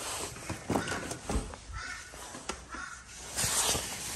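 A refrigerator door is pulled open.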